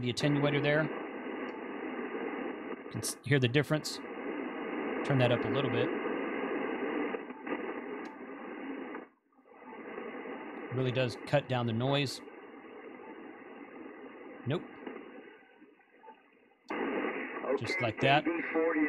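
A man's voice talks through a radio loudspeaker, crackly and thin.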